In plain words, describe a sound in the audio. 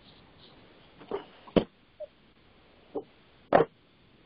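A woman speaks haltingly over an online call.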